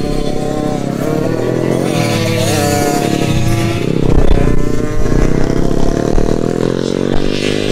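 Dirt bike engines rev and whine loudly close by.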